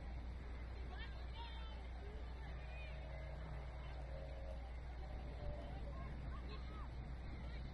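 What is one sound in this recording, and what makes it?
Young players shout and call out to each other across an open field, far off.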